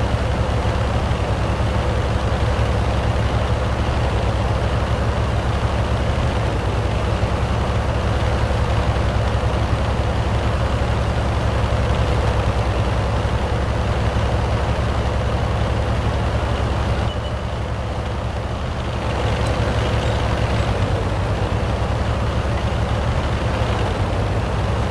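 A tank engine rumbles as the tank drives.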